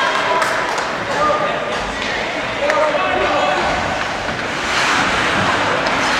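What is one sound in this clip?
Ice skates scrape and hiss across ice in a large echoing arena.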